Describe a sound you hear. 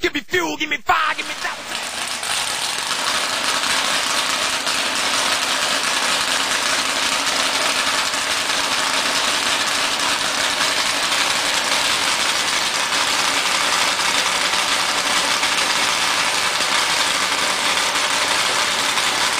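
A racing engine runs loudly and steadily.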